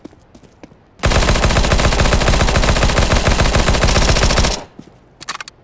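A submachine gun fires a long, rapid burst at close range.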